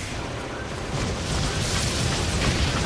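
A blast roars loudly.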